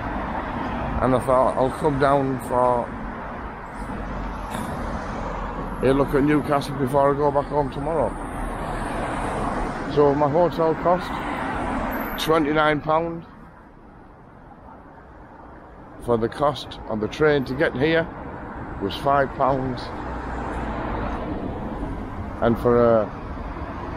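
A middle-aged man talks calmly close to the microphone.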